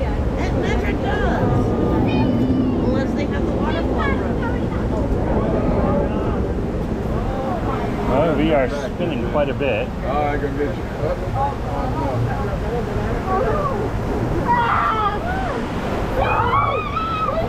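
Water rushes and splashes steadily around a raft.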